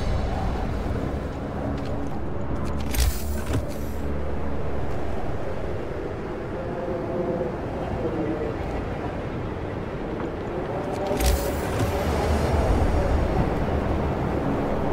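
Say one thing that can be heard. A strong wind howls steadily.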